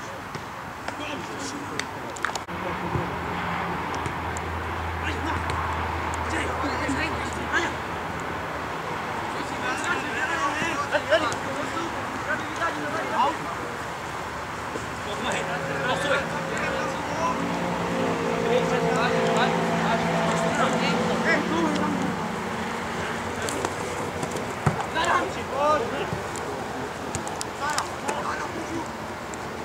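Young men shout and call to each other across an open field.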